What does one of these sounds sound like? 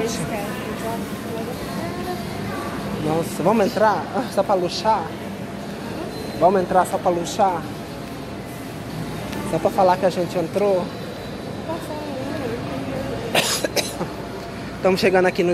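Distant voices murmur in a large echoing hall.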